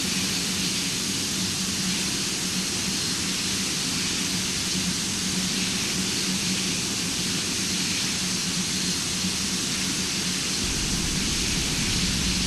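Jet engines roar steadily at high power.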